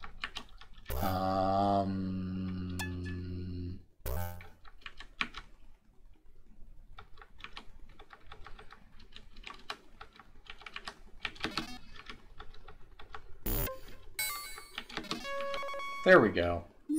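Retro video game sound effects bleep and chirp.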